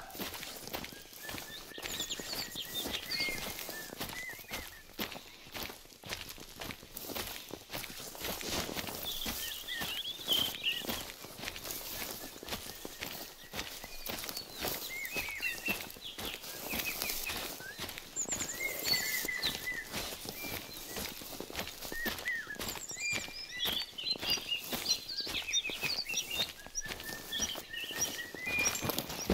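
Footsteps rustle through tall plants at a steady walking pace.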